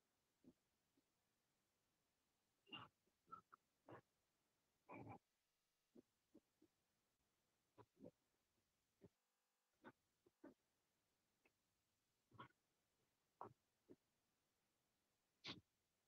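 A pen scratches and taps on paper in short bursts.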